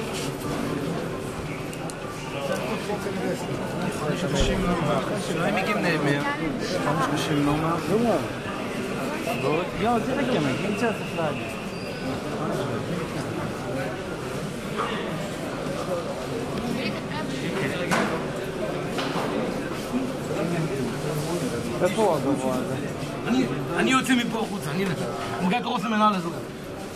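Many men talk at once in a large echoing hall.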